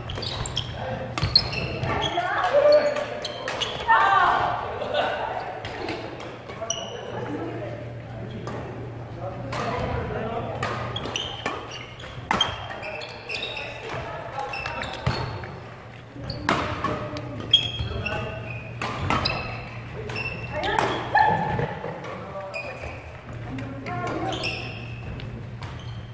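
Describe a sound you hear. Shuttlecocks are struck with rackets in sharp pops, echoing through a large hall.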